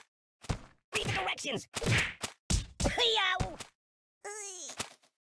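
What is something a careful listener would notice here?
A cartoon dummy thuds hard against walls.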